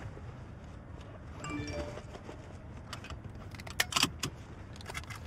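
A seatbelt buckle clicks into place.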